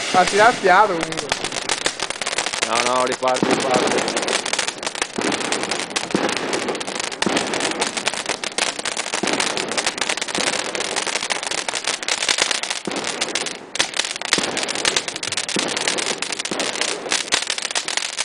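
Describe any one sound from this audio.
Firework sparks crackle and pop rapidly.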